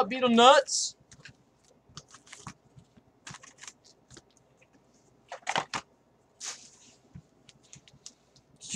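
Wrapped card packs rustle and click in a cardboard box.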